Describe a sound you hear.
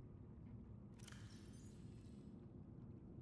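A storage panel opens with a bright shimmering swish.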